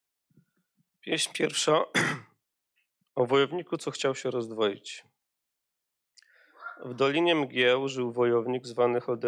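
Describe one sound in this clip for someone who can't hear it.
A man reads aloud into a microphone, with animation.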